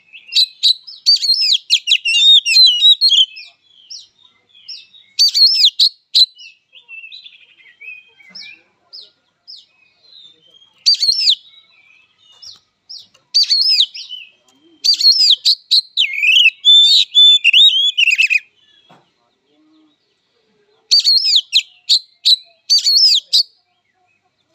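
A songbird sings loud, varied whistling phrases in bursts close by.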